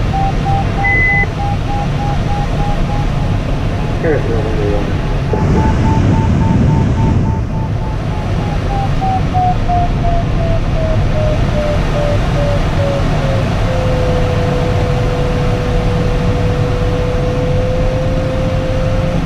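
Wind rushes steadily past a glider's cockpit.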